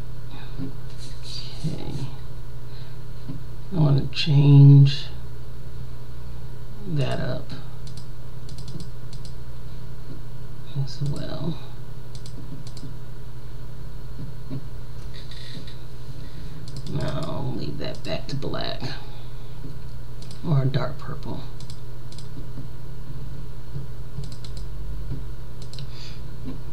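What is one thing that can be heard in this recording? A mouse clicks now and then.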